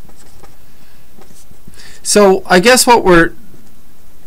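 A marker pen scratches across paper.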